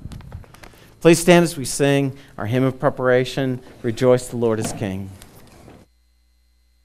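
A man speaks clearly through a microphone in a large hall.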